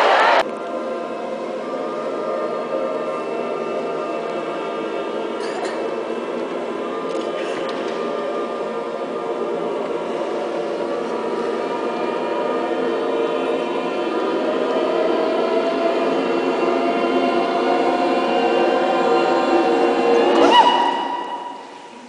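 A large choir sings in harmony in a big echoing hall, swelling and then falling silent.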